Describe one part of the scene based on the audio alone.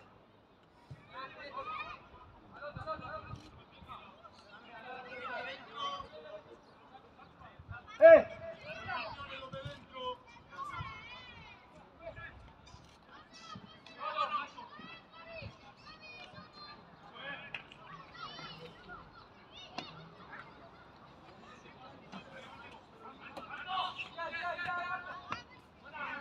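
Young male players shout and call to each other across an open field.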